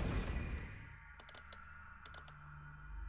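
Metal gears of a lock click and tick as they turn.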